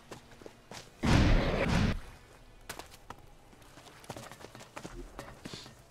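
Footsteps thud on dry dirt.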